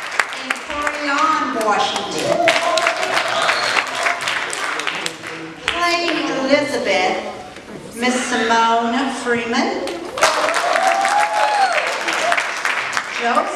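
Young girls sing together.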